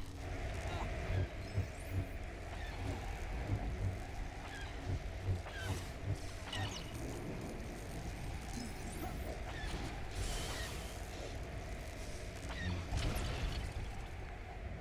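Blows clang and crash against a large machine.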